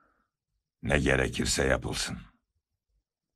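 An elderly man speaks in a firm, raised voice.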